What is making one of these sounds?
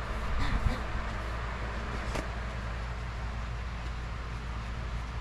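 A plastic sheet crinkles and rustles as hands smooth it.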